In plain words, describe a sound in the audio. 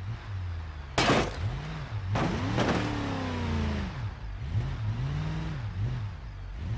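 A truck's tyres bump and clank onto a metal ramp.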